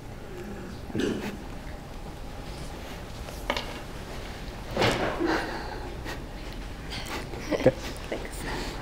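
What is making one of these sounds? A man speaks calmly at a distance.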